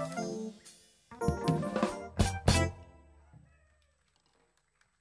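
A jazz band plays with an upright bass, drums and a keyboard.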